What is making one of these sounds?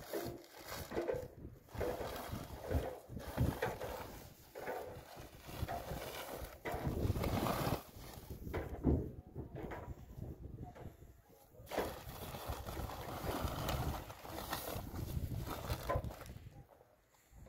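Plastic sacking rustles and crinkles as it is handled.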